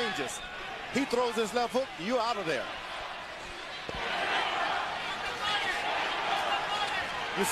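A large crowd murmurs and then cheers loudly in a big hall.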